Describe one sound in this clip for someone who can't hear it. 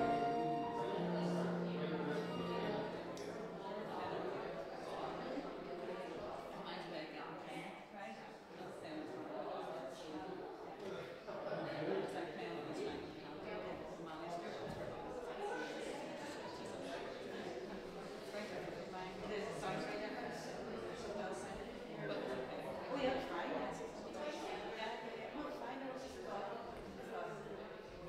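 A violin plays a melody in a large echoing hall.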